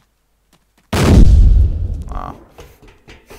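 A rifle fires a short burst of loud shots.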